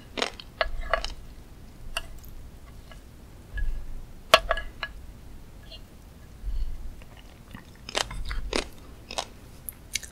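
A metal spoon scrapes and clinks softly.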